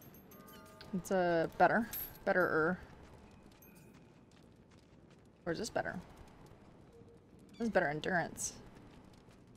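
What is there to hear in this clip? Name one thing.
A young woman talks casually into a close microphone in short bursts.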